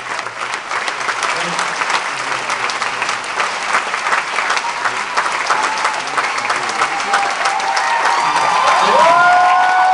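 A trumpet plays a few notes.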